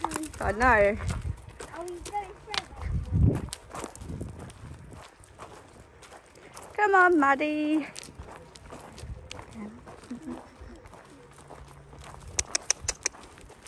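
Hooves crunch on gravel.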